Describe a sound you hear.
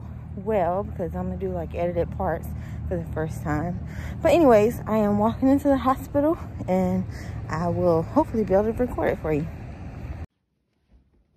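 A young woman talks close to the microphone, outdoors in wind.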